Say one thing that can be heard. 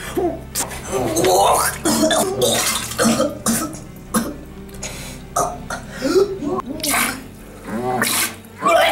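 A man retches and gags loudly up close.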